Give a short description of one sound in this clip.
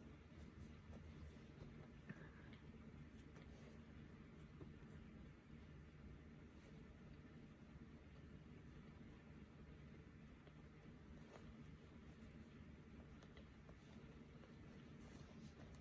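Thread is pulled softly through fabric as hands stitch by hand.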